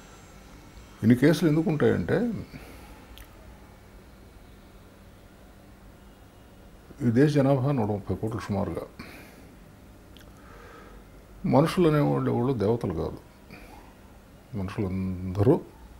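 An older man speaks calmly and slowly into a close microphone, pausing between phrases.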